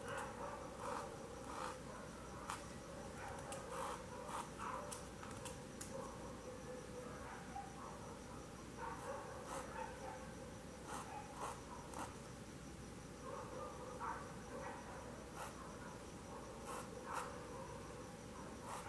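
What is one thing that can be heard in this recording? A paintbrush softly brushes across fabric.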